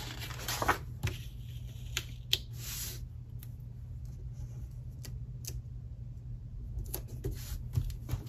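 Paper stickers crinkle softly as they are peeled and pressed down.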